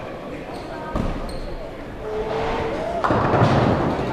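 A heavy ball thuds onto a lane and rolls away in a large echoing hall.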